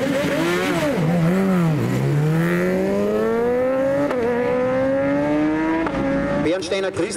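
A motorcycle engine revs and roars as the bike accelerates away, rising in pitch through quick gear changes.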